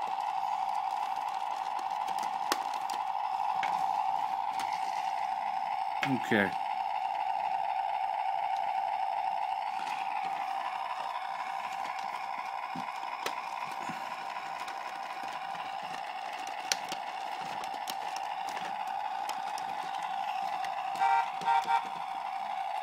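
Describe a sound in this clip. Plastic parts of a toy car click as hands move them.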